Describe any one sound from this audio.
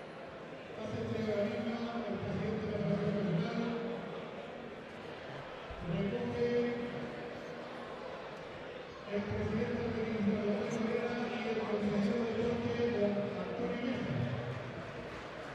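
A group of men sing together in a large echoing hall.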